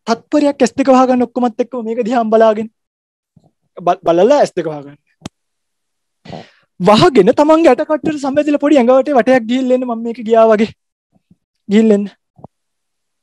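A man speaks calmly into a microphone, heard over an online call.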